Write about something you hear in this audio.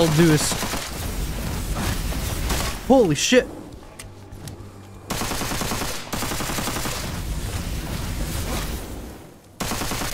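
Guns fire in rapid bursts, loud and close.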